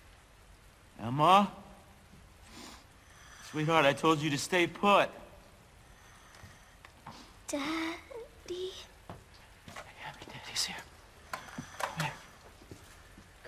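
A young man talks into a close microphone in short bursts.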